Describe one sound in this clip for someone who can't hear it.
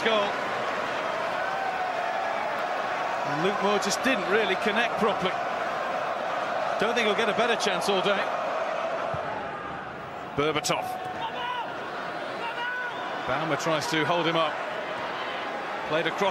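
A large crowd murmurs and cheers in a big open stadium.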